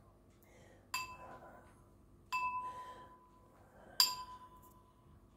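A brush taps against a ceramic bowl with a light ringing clink.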